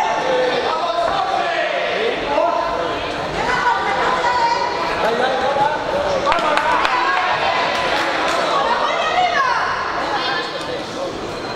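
Spectators shout and call out around a boxing ring.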